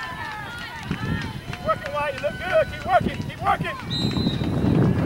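Young women shout to each other across an open field in the distance.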